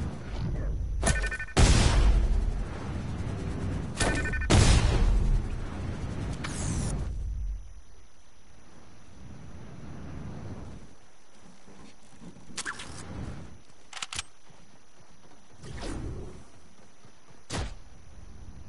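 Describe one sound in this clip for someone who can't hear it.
Short electronic chimes and swooshes sound.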